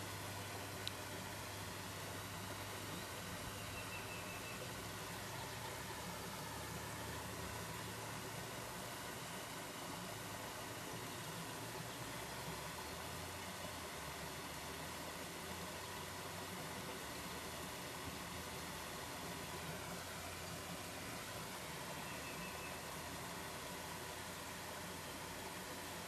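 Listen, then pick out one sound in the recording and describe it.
A small waterfall splashes and rushes steadily over rocks.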